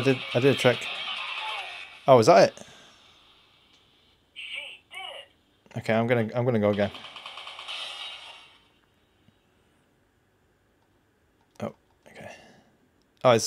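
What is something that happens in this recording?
Video game sound effects and jingles play from a small handheld speaker.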